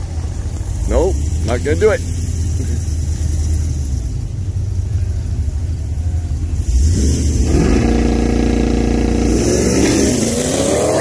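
Race car engines rumble and rev loudly nearby.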